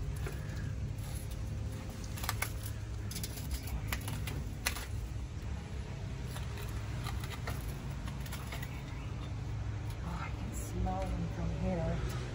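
A person shuffles and scrapes while crawling.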